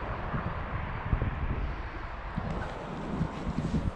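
Boots scrape and crunch on rock.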